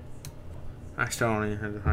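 A short bright victory tune plays.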